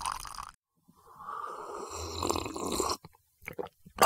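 A man slurps from a cup.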